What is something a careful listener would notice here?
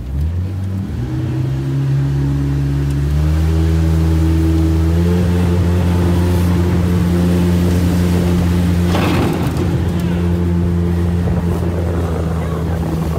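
A boat engine drones loudly and steadily, rising in pitch as it speeds up.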